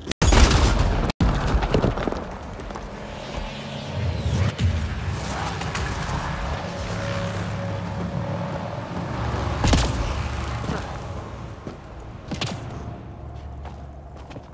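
Heavy boots crunch on gravel.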